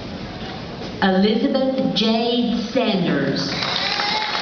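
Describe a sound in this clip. A woman announces through a loudspeaker in a large echoing hall.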